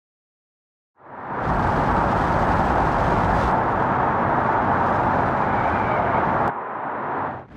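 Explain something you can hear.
A car engine roars steadily as the car drives fast.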